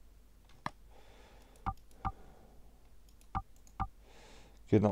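Short soft menu clicks tick now and then as a selection moves.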